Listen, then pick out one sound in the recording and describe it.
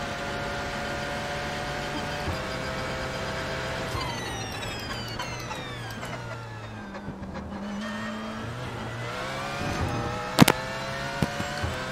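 A racing car engine whines at high revs, dropping in pitch as the car slows and rising again as it speeds up.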